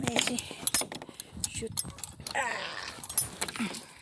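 A gate creaks as it swings open.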